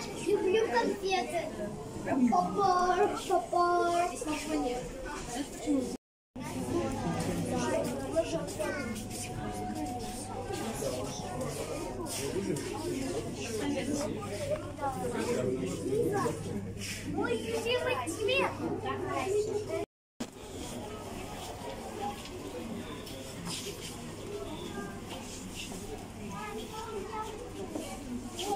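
A crowd of men and women chatter nearby in an echoing hall.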